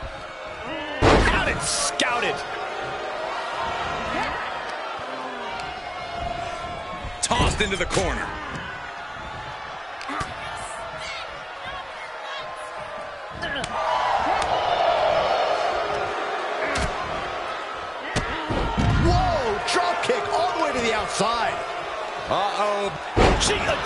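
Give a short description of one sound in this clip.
Heavy bodies slam hard onto a wrestling mat.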